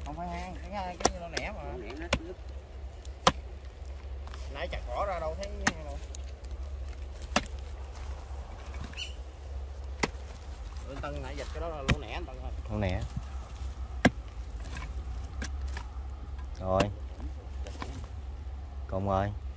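A hoe chops into dry soil with dull thuds.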